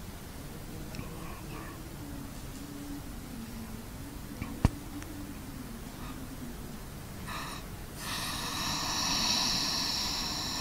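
A man chants a recitation in a drawn-out melodic voice through a microphone.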